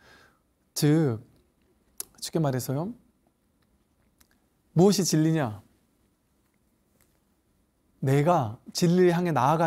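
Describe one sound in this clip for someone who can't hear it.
A middle-aged man speaks with emphasis into a clip-on microphone, in short bursts with pauses.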